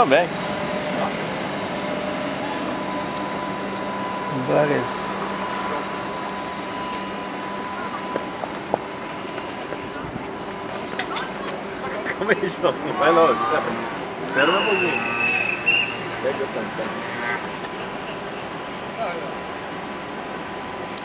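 A train engine hums steadily while idling close by.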